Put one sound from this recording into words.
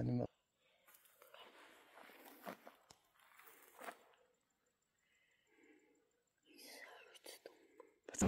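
Shells click softly as a gun is loaded.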